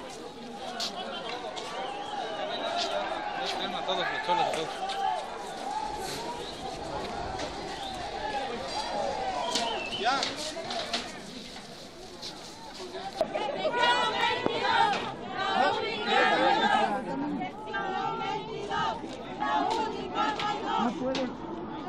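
A crowd of people talks outdoors.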